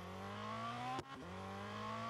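A race car engine drops briefly in pitch at a gear change.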